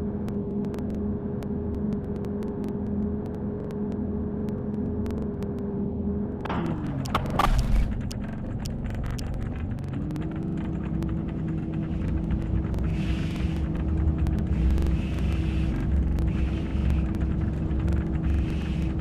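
A bus engine hums steadily, dropping in pitch as it slows.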